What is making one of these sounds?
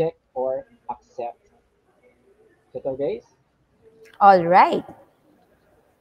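A woman speaks clearly into a microphone, in short phrases.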